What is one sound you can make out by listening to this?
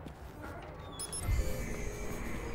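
A metal door slides open with a thud.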